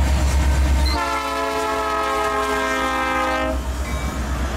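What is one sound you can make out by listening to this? A train horn blares in a long, steady blast.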